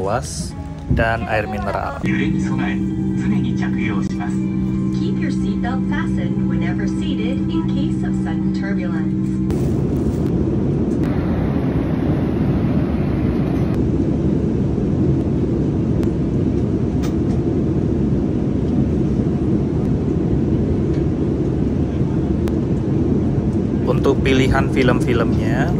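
A steady low roar of jet engines fills an airliner cabin.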